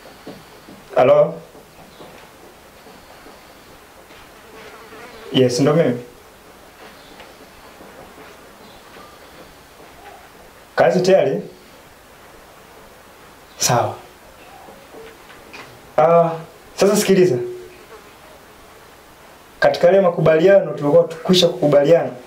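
A young man talks on a phone in short bursts, with pauses between.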